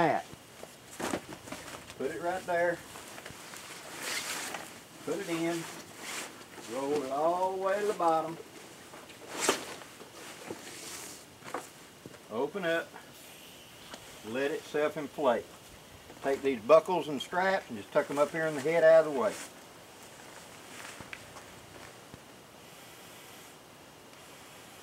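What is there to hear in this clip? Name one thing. Fabric rustles as a padded case is handled.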